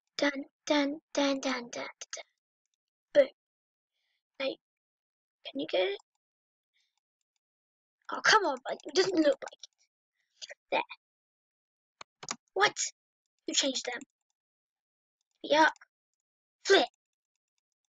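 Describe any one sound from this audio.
A boy talks with animation into a close microphone, in short bursts with pauses.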